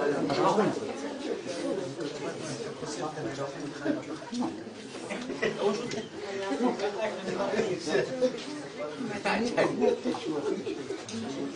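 A crowd of men and women chatter nearby in a room.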